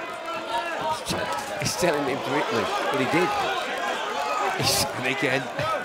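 Gloved punches thud and smack.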